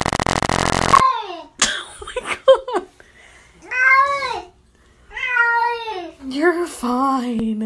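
A cat yowls and wails loudly, close by.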